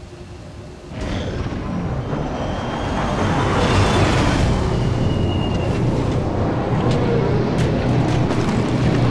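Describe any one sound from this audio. A heavy aircraft's engines roar loudly as it lifts off and flies overhead.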